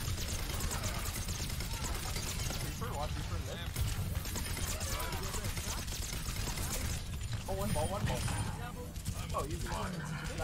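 Energy beams crackle and zap in a video game.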